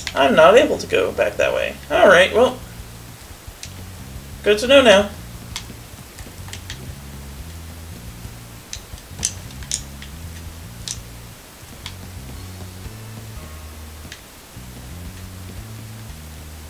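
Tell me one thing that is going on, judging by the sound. Soft game music plays steadily in the background.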